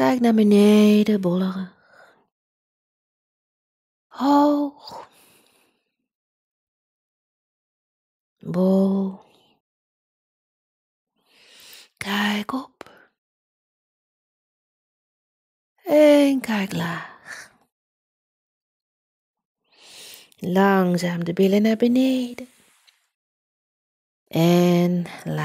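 A woman speaks calmly through a headset microphone, in short phrases with long pauses.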